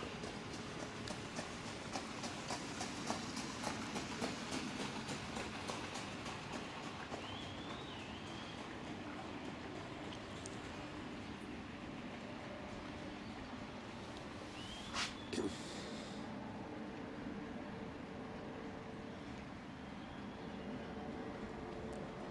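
Harness horses trot past in the distance, hooves beating faintly.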